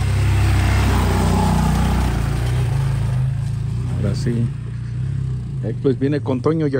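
A motorcycle engine rumbles and pulls away, fading into the distance.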